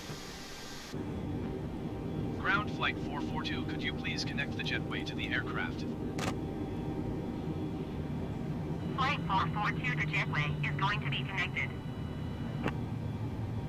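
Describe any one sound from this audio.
A low steady hum of aircraft systems fills a cockpit.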